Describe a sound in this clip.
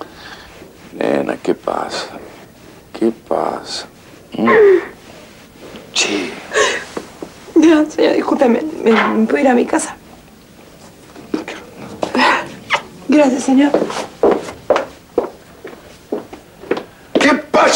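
An older man speaks softly and calmly nearby.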